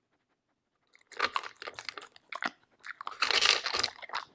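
A dog crunches and chews dry kibble close by.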